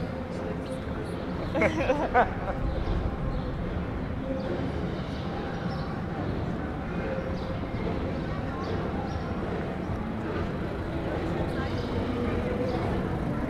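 A crowd of people murmurs in the distance outdoors.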